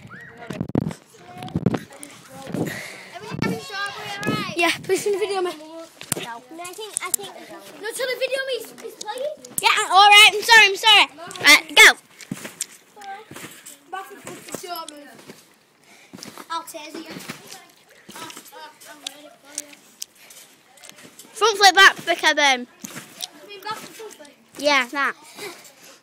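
A young boy talks and shouts excitedly close by.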